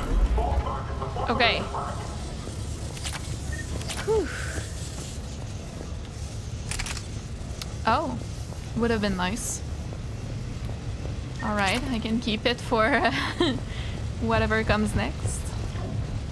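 A young woman speaks calmly into a close microphone, in short phrases.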